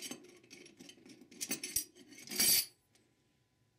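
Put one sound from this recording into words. Metal parts clink and scrape together as a steel puller tool is handled.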